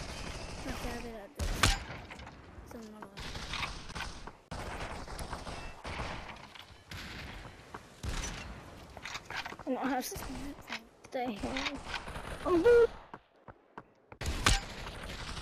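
A gun fires sharp single shots.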